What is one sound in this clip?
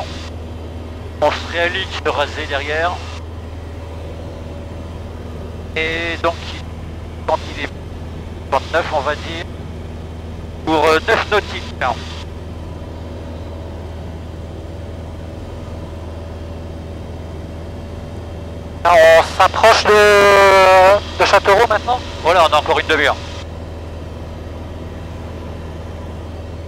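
An aircraft engine drones steadily inside a small cockpit.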